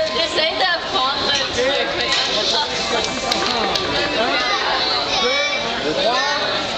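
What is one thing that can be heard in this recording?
Many young children chatter and shout excitedly nearby.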